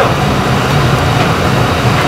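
Broth pours and splashes into a pot.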